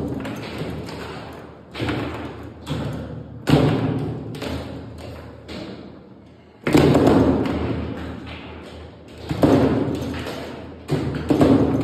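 Foosball rods spin and clatter as the ball is knocked across a table.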